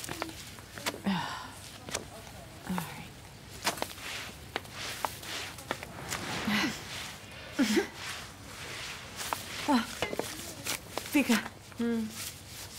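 A middle-aged woman talks briefly nearby.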